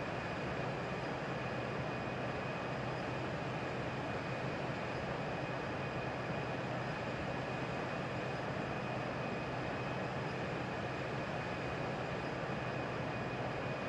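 Jet engines roar steadily with a constant rushing hum.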